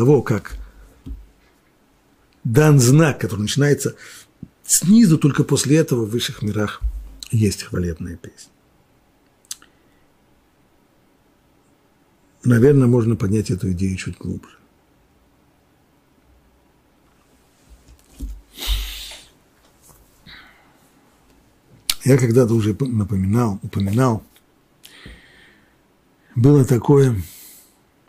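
An older man speaks calmly and with pauses into a close microphone.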